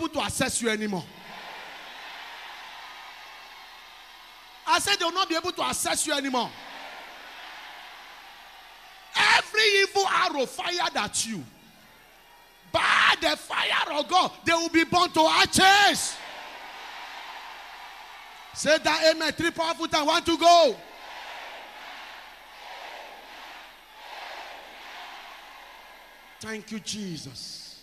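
A large crowd shouts and cheers in an echoing hall.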